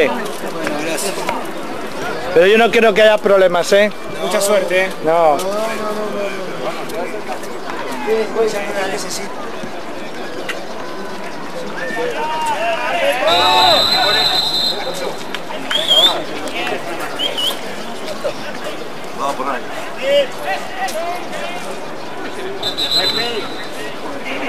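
Men shout and call out across an outdoor football pitch.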